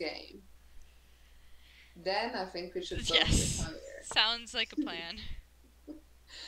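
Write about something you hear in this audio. A young woman laughs through a microphone.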